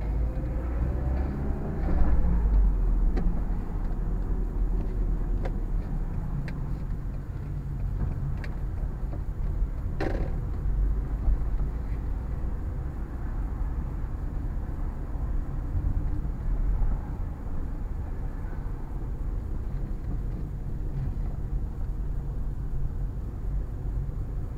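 A car engine hums low and steady from inside the car as it drives slowly.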